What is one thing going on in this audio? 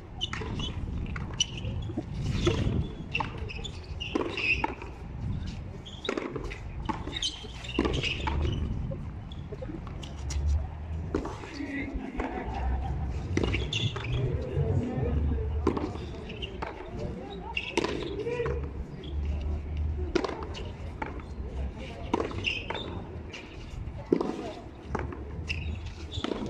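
Sneakers scuff and squeak on a concrete court.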